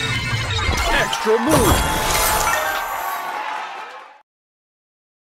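A cheerful fanfare plays for a big combo.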